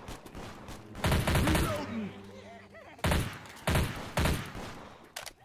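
A submachine gun fires in short, loud bursts.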